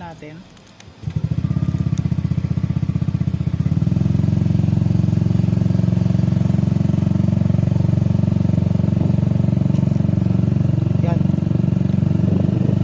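A single-cylinder scooter engine idles.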